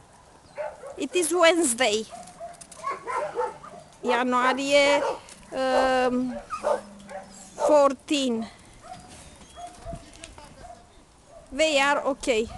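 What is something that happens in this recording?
Dogs whine and howl in high, wavering cries.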